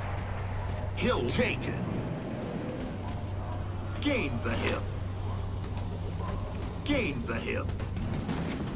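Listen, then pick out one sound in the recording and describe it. An energy sword swings with a sharp, buzzing whoosh.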